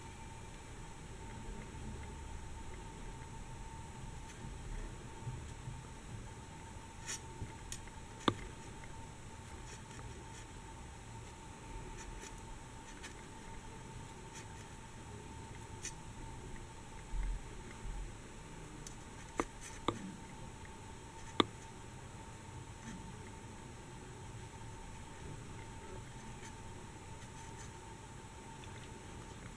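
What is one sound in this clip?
Thread rustles softly between fingers.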